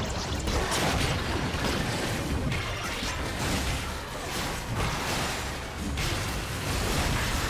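Game sound effects of attacks and spells crackle and boom in quick bursts.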